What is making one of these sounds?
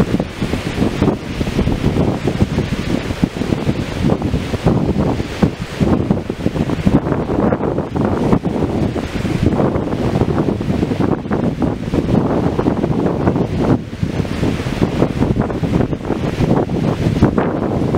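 Wind gusts outdoors through trees.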